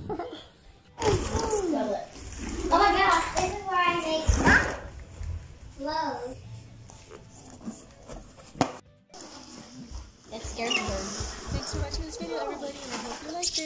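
Cardboard wheels roll across a wooden floor.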